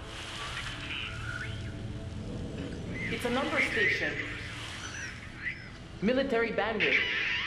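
Static hisses and crackles from a radio loudspeaker.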